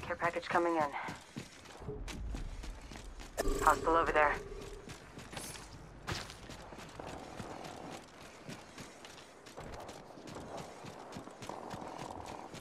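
Footsteps patter quickly on hard ground.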